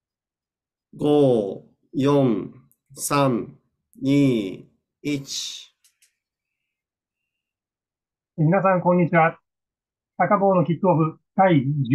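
A middle-aged man speaks calmly and slowly into a microphone, close by, with pauses between phrases.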